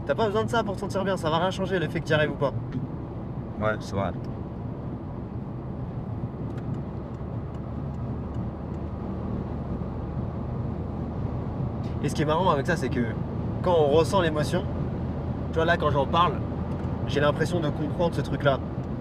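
A young man talks calmly and close by inside a car.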